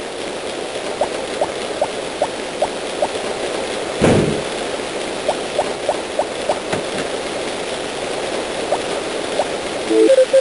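Soft game footsteps tap in a quick, even rhythm.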